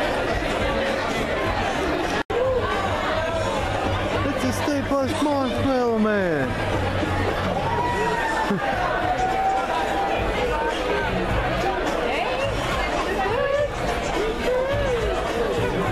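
A crowd of people chatter and shout loudly nearby.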